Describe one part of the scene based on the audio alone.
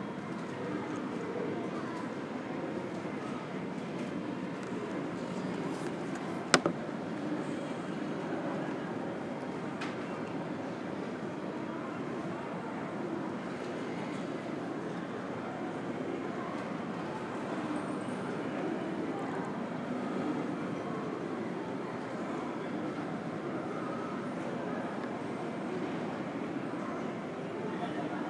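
A steady low hum fills a large echoing hall.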